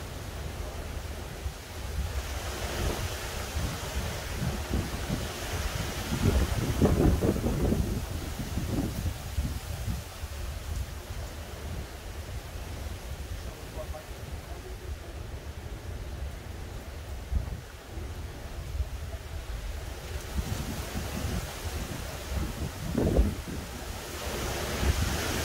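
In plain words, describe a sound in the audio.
Wind gusts outdoors and buffets the microphone.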